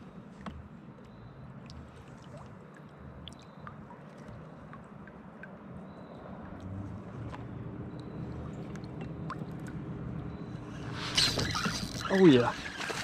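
Water laps softly against a kayak hull.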